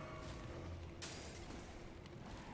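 A sword swings through the air with a swift whoosh.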